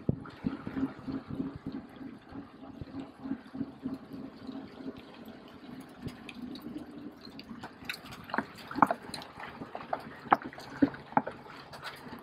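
Bicycle chains and frames rattle and clatter over bumps.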